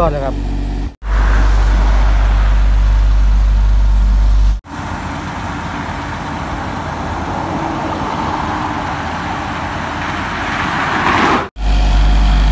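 An asphalt paver's engine drones loudly.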